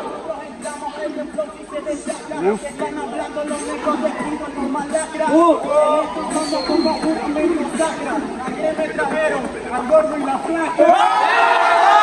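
A young man raps quickly into a microphone, heard through loudspeakers outdoors.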